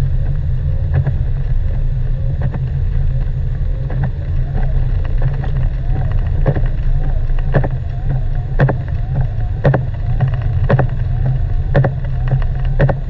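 Wet snow taps against a windshield.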